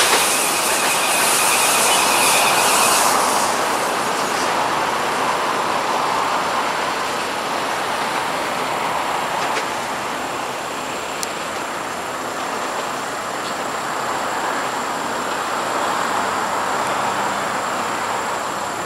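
An electric train rumbles and hums along the tracks as it approaches.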